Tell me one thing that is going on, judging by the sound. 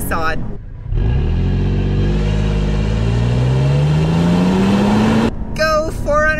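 A car engine hums low and rises in pitch as it speeds up.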